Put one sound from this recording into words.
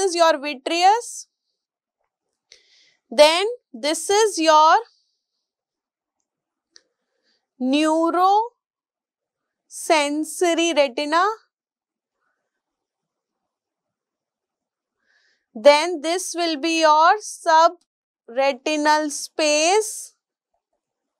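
A woman speaks calmly into a close microphone, in short bursts with pauses.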